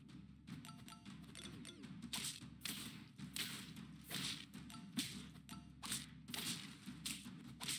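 Cartoonish game hit sounds pop quickly as creatures attack each other.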